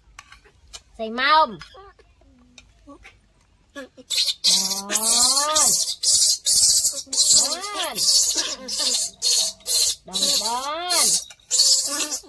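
A baby monkey squeals in high, rising and falling cries.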